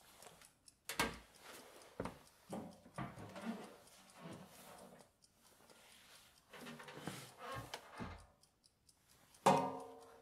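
A man handles a tuba with knocks and clunks.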